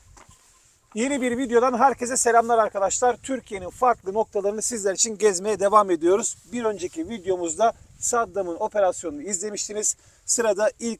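A man talks with animation close by, outdoors.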